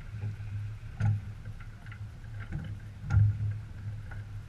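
Water splashes against a sailboat's hull.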